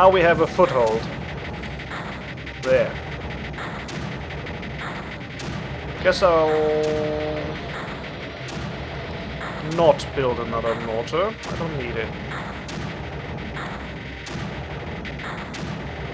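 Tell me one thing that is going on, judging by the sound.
Electronic zaps and blips from a computer game sound now and then.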